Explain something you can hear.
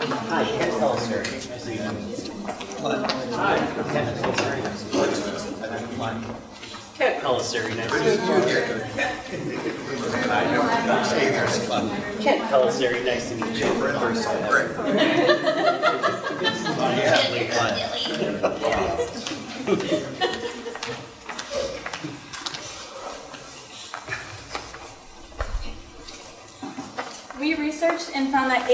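A crowd of men and women chatter in a room with a slight echo.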